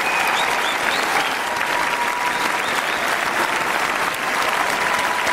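A large crowd applauds and cheers in a big echoing hall.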